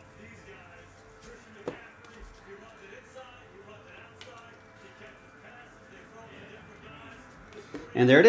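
Trading cards slide and flick against each other in hand.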